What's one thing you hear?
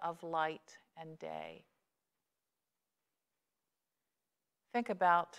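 A middle-aged woman speaks calmly and clearly into a microphone, with pauses.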